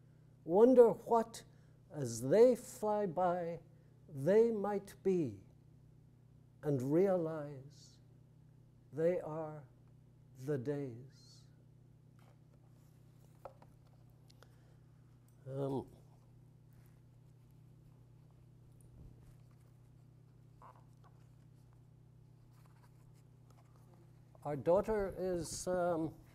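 An older man speaks slowly and calmly into a microphone, with long pauses.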